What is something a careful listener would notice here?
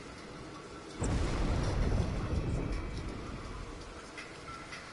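A low rumble of thunder rolls and fades.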